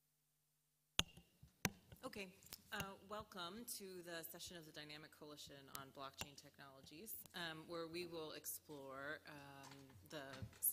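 A woman speaks calmly into a microphone over loudspeakers.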